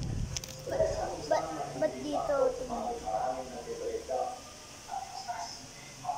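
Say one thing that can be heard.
A young boy speaks close to the microphone.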